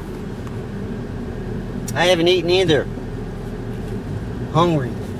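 A car engine idles with a low steady hum.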